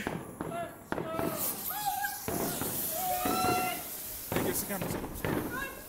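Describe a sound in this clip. A firework fountain sprays with a loud crackling hiss.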